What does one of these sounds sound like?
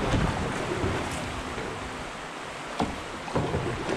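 A paddle knocks against the side of a canoe.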